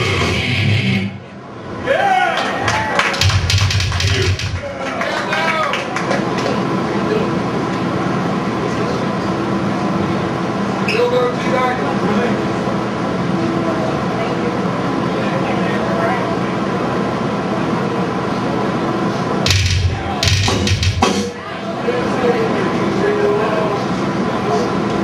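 A heavy metal band plays loudly with distorted guitars and pounding drums in an echoing hall.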